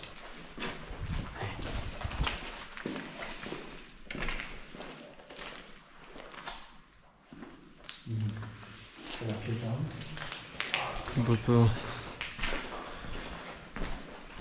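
Footsteps crunch over debris on the floor.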